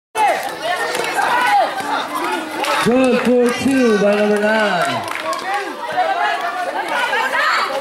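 A crowd outdoors shouts and cheers loudly.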